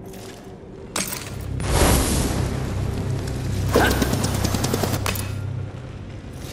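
A fiery weapon whooshes and roars with flames.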